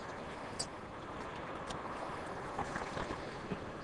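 A knife slices through raw fish.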